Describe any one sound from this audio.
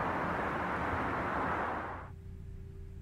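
City traffic hums in the distance.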